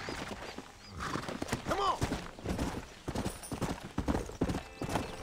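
Horse hooves thud on dry ground at a trot.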